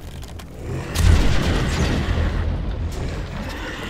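Electric thunder crackles loudly.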